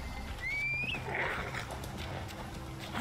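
A horse snorts and whinnies nearby.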